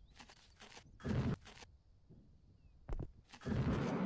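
A jetpack thruster roars in short bursts.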